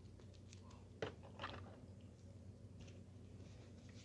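Plastic blister packaging crinkles as a hand handles it.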